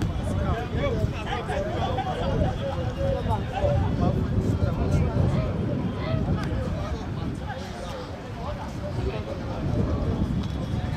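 Spectators chatter and call out nearby.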